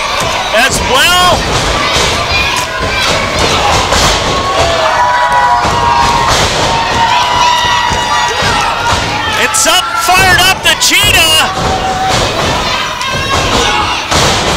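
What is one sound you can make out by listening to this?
Wrestlers' bodies slam onto a ring mat with loud thuds.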